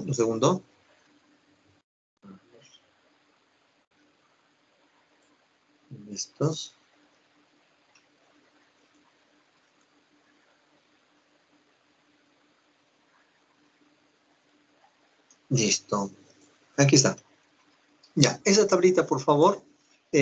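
A man speaks calmly in short bursts through an online call.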